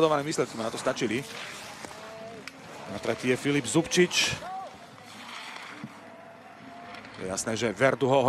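Skis scrape and hiss on hard snow as a skier carves through turns.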